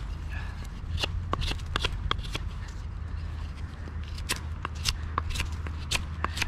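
A knife scrapes and shaves bark off a stick with quick strokes.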